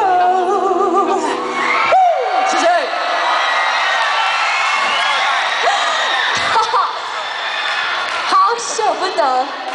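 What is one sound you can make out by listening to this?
A crowd screams and cheers loudly.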